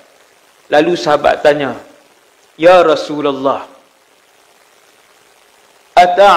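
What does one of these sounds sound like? A man speaks with animation through a clip-on microphone, in short bursts with pauses.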